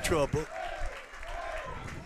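A group of men cheer and shout nearby.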